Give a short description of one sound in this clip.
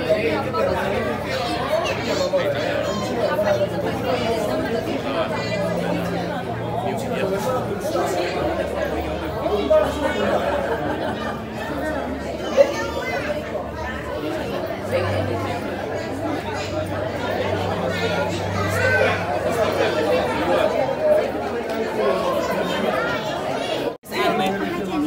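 A crowd of people chatters nearby in an echoing hall.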